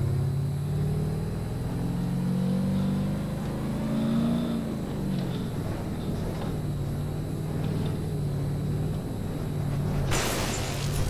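A car engine roars and changes pitch as it drives over a rough road.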